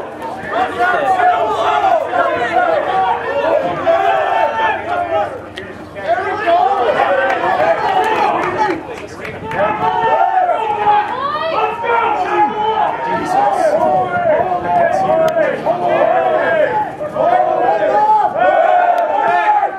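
Young men shout and call to each other outdoors, some way off.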